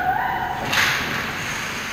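A hockey stick slaps a puck with a sharp crack.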